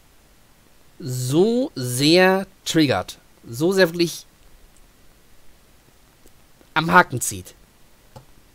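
A middle-aged man speaks with animation close to a microphone.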